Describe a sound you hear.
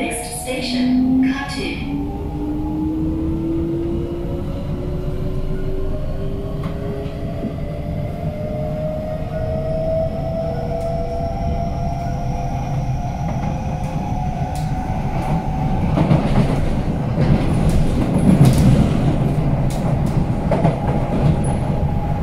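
Wheels of an electric metro train rumble on the rails.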